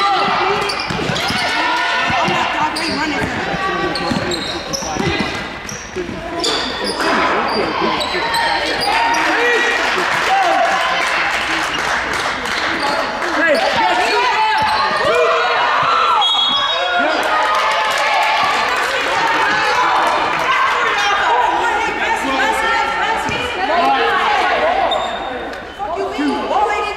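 Young women players shout to each other across the court.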